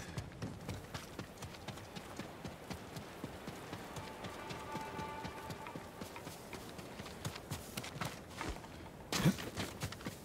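Footsteps crunch quickly on a dirt path.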